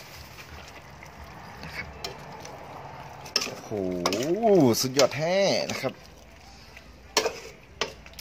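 A metal ladle scrapes and clinks against a pot.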